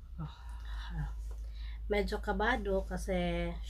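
Fabric rustles as a woman handles it.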